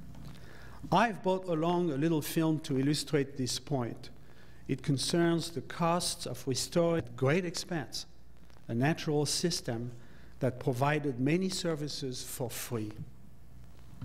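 A man speaks calmly into a microphone over loudspeakers in a large room.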